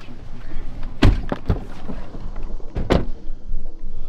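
A car door thuds shut.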